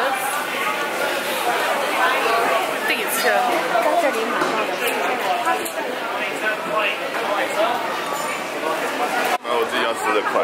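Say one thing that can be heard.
A young woman talks close by in a low, casual voice.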